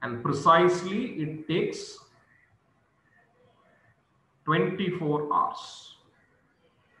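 A man lectures calmly into a microphone, speaking in short bursts.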